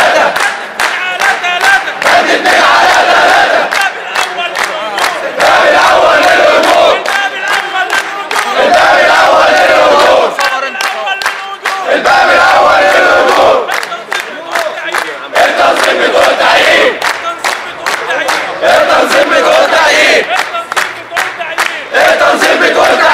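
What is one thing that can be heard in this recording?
A man leads the chant, shouting.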